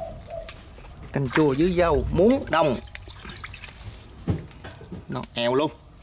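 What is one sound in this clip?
Wet leafy stems rustle and splash softly in a tub of water.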